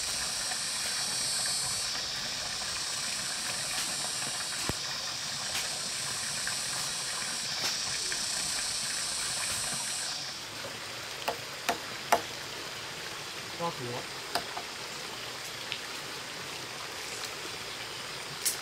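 Water trickles from a pipe into a pond.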